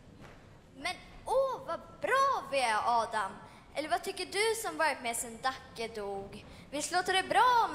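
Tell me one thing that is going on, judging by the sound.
A man speaks with animation into a microphone over loudspeakers in a large hall.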